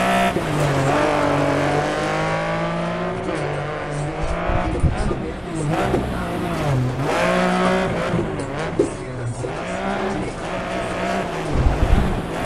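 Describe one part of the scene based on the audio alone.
Gravel sprays and crunches under tyres.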